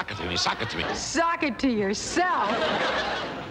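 A woman speaks clearly, addressing listeners.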